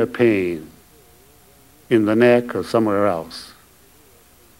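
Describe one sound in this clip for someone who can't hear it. An elderly man speaks slowly and deliberately into a microphone, with pauses.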